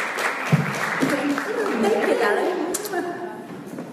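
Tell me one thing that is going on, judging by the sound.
A second woman speaks through a microphone.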